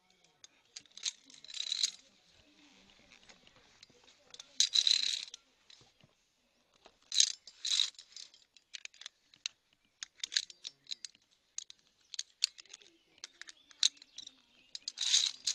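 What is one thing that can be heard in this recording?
Metal carabiners clink and scrape against a steel cable.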